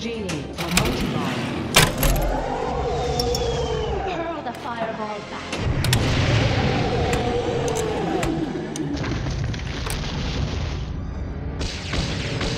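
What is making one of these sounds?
A pinball machine plays chiming electronic tunes that rise and fall.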